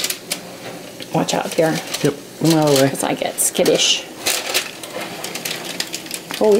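A baking pan scrapes and rattles on a metal oven rack.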